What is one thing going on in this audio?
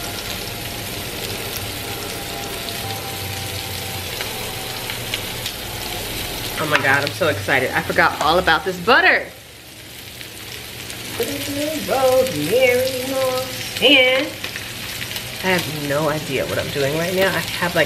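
Meat sizzles in a frying pan.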